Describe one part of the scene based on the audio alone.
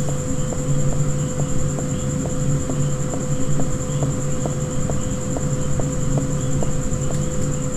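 Footsteps walk steadily on a hard floor.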